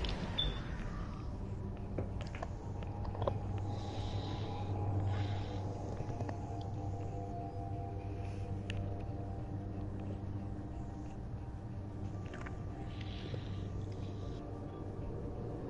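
A spacecraft engine hums with a steady low drone.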